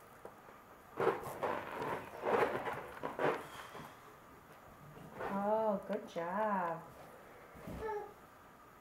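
Rubber balloons squeak and bump together.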